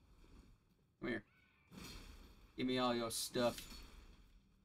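A sword slashes and clashes with sharp impacts.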